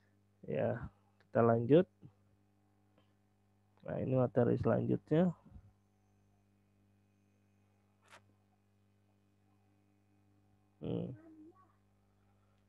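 A young man speaks slowly in short phrases through an online call.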